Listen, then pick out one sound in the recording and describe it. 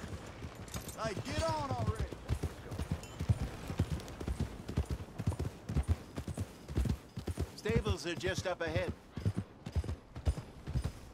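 Horse hooves thud steadily on a dirt track.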